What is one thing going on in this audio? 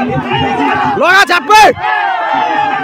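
Spectators cheer and shout loudly in sudden bursts.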